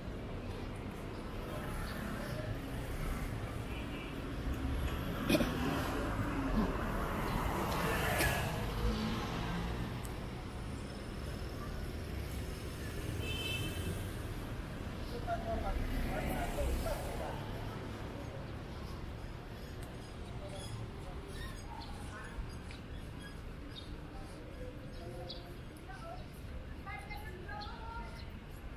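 Traffic hums steadily outdoors.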